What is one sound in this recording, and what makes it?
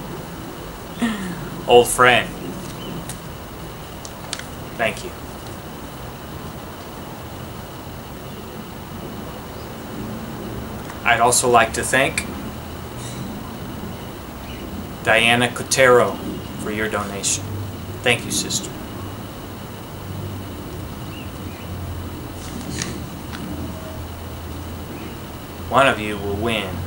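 A young man speaks with animation close by, in short bursts.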